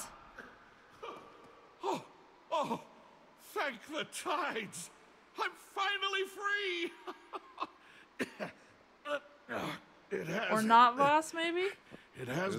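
An elderly man speaks with relief and animation, close by.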